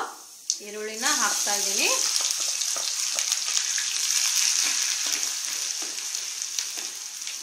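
Chopped onions sizzle and hiss in a hot pot.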